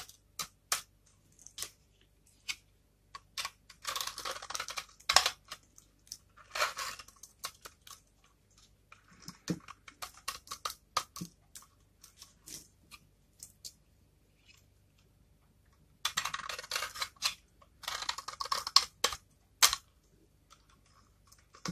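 Soap flakes crackle and crumble under a thumb.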